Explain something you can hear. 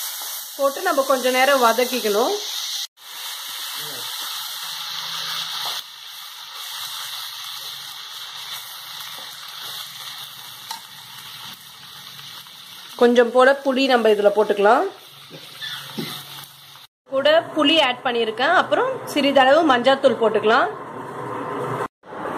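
Food sizzles in hot oil.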